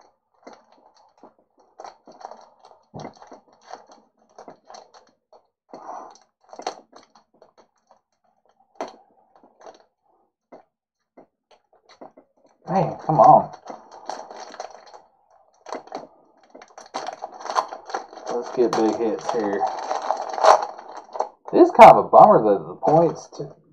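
A foil card pack crinkles and rustles as it is torn open.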